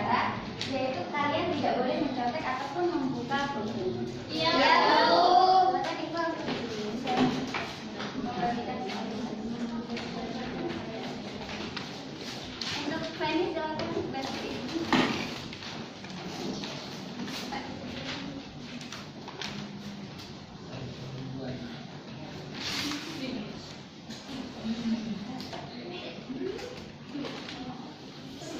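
A woman speaks calmly and clearly to a group in a room with some echo.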